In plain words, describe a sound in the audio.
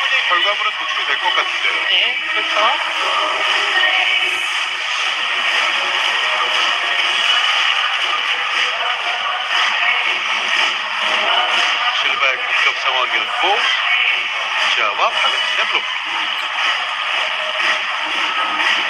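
A large crowd cheers and chants loudly in an echoing hall.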